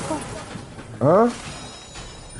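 A young man's voice rises in a sharp exclaim.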